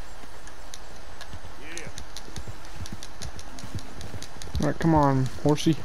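A horse gallops over grassy ground.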